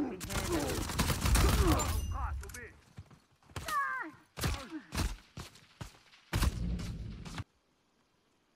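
Gunshots ring out in loud bursts.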